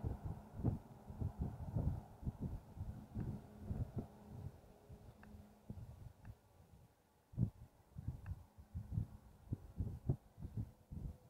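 Wind buffets and rumbles against the microphone in gusts.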